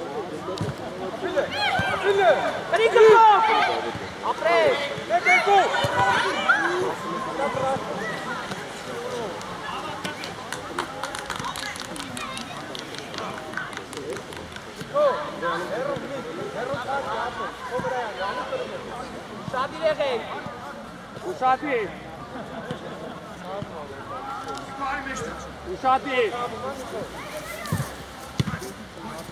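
Children shout and call out across an open pitch outdoors.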